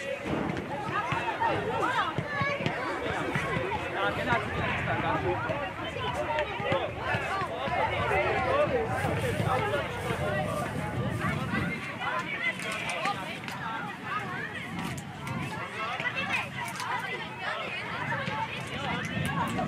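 Young children shout and call out to one another outdoors.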